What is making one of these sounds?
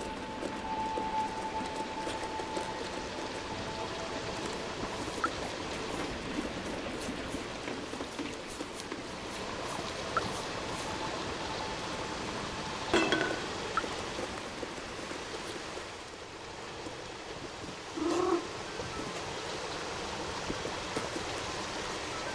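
A cat's paws patter softly on wooden boards.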